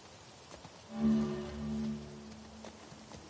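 A horse snorts and whinnies close by.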